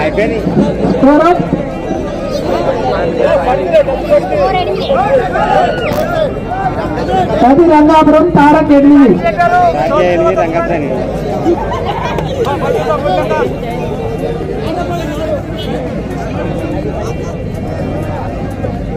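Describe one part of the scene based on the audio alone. Men nearby talk and call out loudly.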